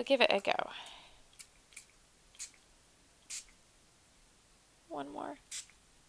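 Short bursts of spray mist hiss.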